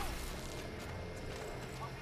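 Electric bolts crackle and zap.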